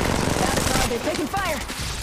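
A rifle fires a burst of rapid shots.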